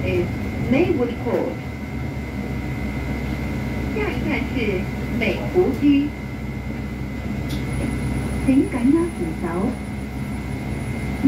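A bus engine hums and rumbles steadily as the bus drives along.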